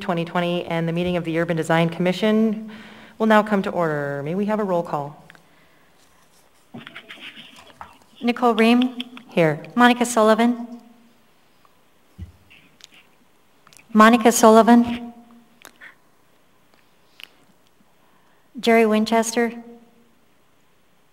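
A woman speaks calmly through a microphone, in short phrases with pauses.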